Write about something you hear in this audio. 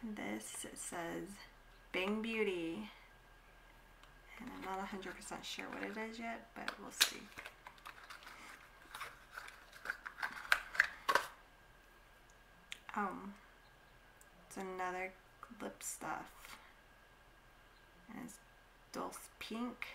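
A young woman talks calmly and close to the microphone.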